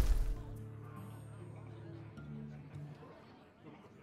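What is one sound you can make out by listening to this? A card game's sound effects chime and hum.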